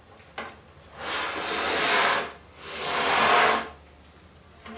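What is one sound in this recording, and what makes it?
Metal slats rattle and scrape as a slatted panel is moved across the floor.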